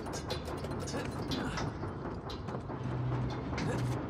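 Large metal gears clank and grind.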